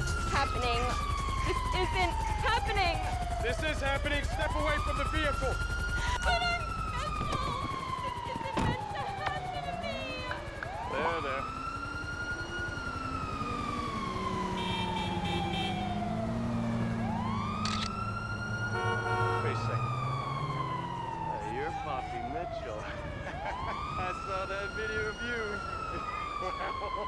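A police siren wails, rising and falling slowly, over and over.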